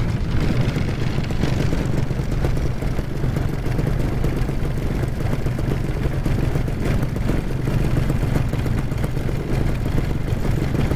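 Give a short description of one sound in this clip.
Wind roars steadily across the microphone.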